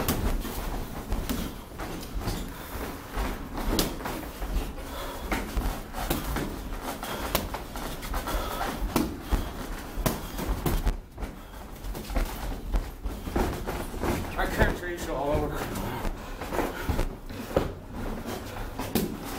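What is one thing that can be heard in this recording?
Feet shuffle and squeak on the ring floor.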